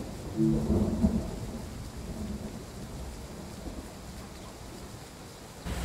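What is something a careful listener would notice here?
A train rolls in slowly.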